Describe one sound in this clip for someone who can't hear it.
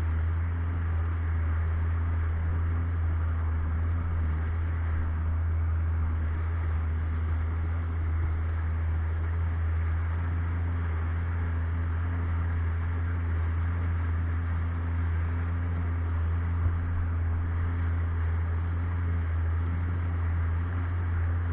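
A small outboard engine hums steadily close by.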